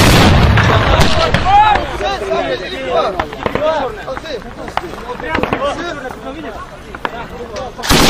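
Gunshots crack sharply, several times.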